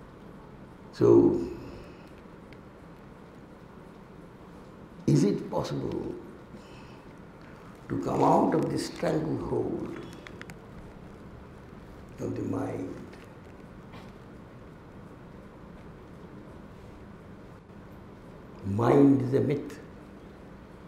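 An elderly man speaks slowly into a microphone in short bursts, with long pauses.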